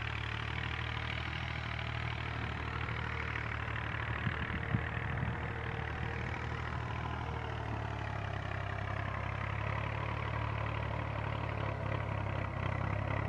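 Wind blows steadily outdoors, rumbling low against the microphone.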